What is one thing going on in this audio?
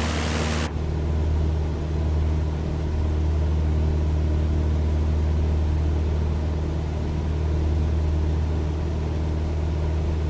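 A small propeller plane's engine drones steadily from inside the cabin.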